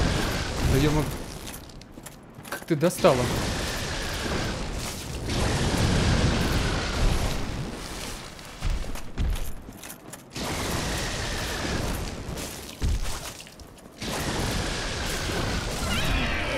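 Lightning spells crackle and burst with loud booms.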